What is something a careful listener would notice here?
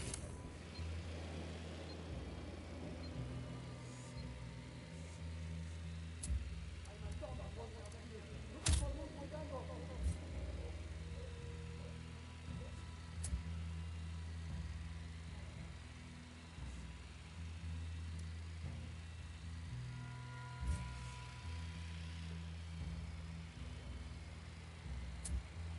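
A small drone hums steadily overhead.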